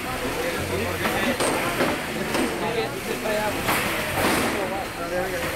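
Metal robots bang and scrape against each other.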